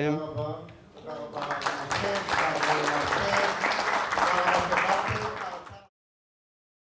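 A man speaks into a microphone in a hall.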